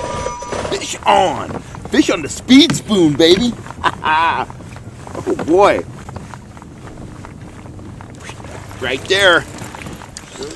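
A man talks with excitement close by.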